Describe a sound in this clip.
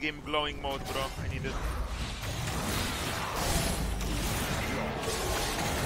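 Spell effects whoosh and crackle in a busy fight.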